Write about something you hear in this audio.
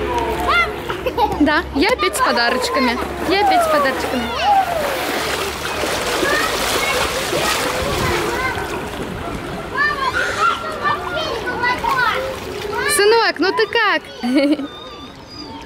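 Children shout and squeal playfully nearby.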